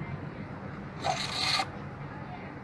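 A metal blade scrapes as it slides into a sheath.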